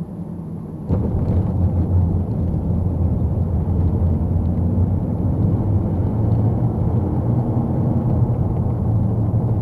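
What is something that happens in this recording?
Tyres rumble steadily on asphalt.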